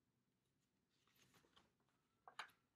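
Book pages rustle as they are turned.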